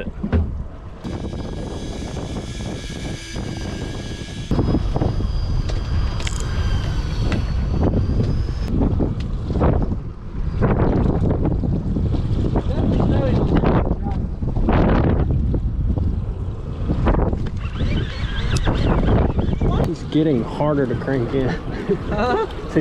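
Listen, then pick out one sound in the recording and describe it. A fishing reel clicks and whirs as it is cranked.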